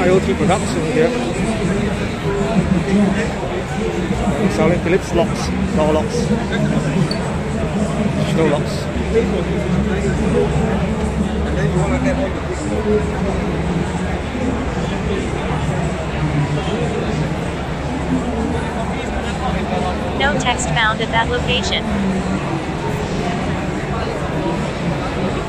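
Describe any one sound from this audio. A crowd murmurs and chatters throughout a large, echoing hall.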